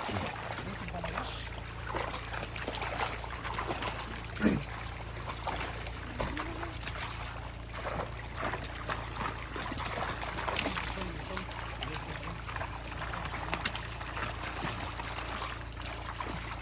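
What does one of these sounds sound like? Water sloshes as people wade through it.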